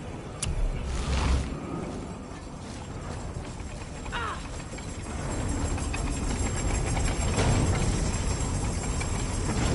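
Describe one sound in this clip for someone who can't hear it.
A heavy metal mechanism grinds and clanks.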